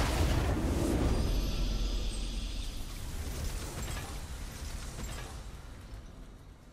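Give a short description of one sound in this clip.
A triumphant game fanfare swells and slowly fades away.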